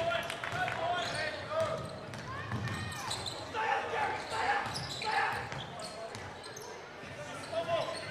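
Basketball shoes squeak sharply on a hardwood court in a large echoing hall.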